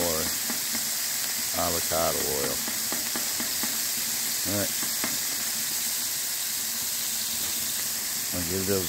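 Burger patties sizzle steadily on a hot griddle, with occasional pops and crackles.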